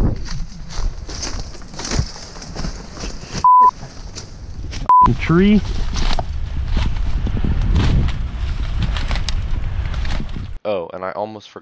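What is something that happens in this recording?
Dry branches and leaves rustle as a man moves through brush.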